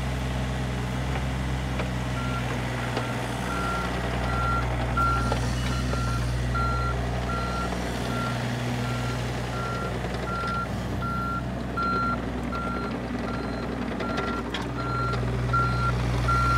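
A small excavator's diesel engine runs with a steady low rumble.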